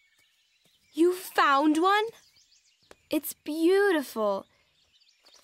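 A young girl speaks cheerfully and close by.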